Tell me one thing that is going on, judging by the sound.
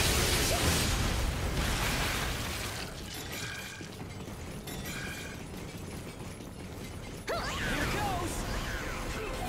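A huge fiery blade whooshes and roars through the air.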